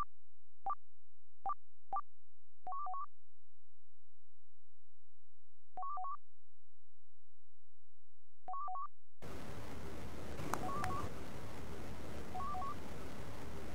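Short electronic menu beeps sound in quick bursts.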